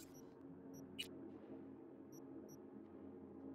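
A game menu beeps softly as options are selected.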